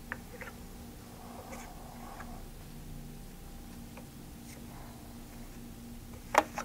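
A scraper scrapes softly across a flat surface.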